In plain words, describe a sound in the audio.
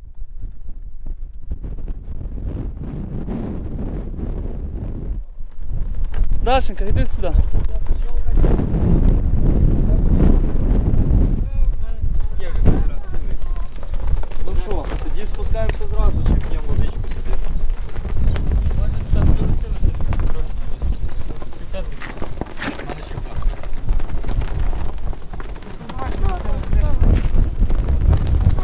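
Flags flap in the wind.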